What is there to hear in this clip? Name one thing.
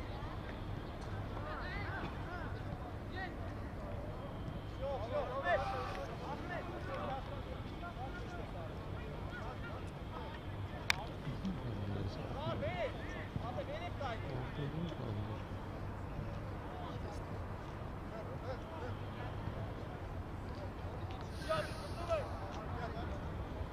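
Young men shout to each other at a distance outdoors.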